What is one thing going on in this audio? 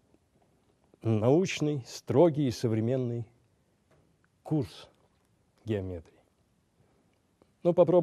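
An older man speaks slowly and calmly into a microphone, with pauses.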